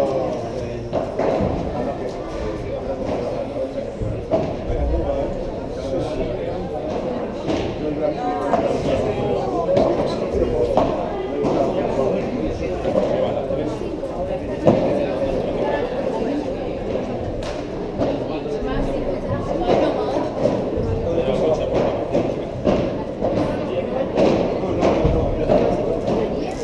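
Paddle rackets strike a ball with sharp pops, echoing in a large hall.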